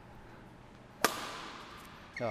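A racket smacks a shuttlecock, ringing in a large echoing hall.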